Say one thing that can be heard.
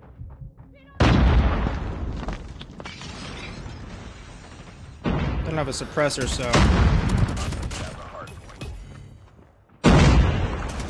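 Gunfire from a video game rattles in quick bursts.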